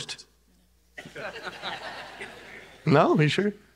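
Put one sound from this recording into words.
A woman laughs heartily.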